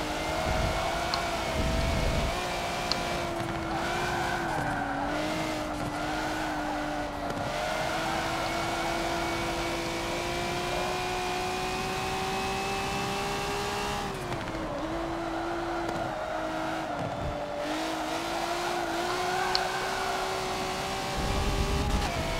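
A racing car engine roars steadily, its pitch rising and falling as the car speeds up and slows for corners.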